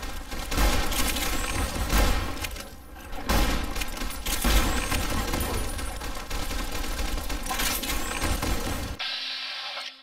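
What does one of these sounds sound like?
A shotgun fires loud, booming blasts again and again.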